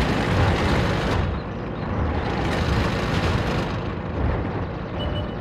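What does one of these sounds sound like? A tank engine rumbles as a tank drives along.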